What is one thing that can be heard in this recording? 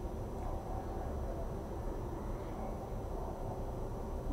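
A spoon scrapes on a plate.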